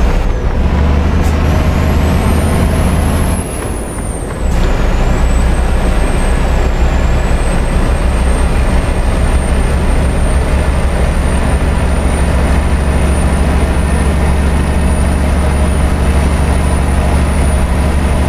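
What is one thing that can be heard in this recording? A truck engine drones steadily at cruising speed.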